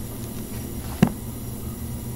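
A book thuds shut.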